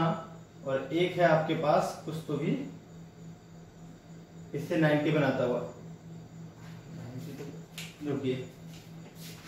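A young man speaks calmly, explaining, close by.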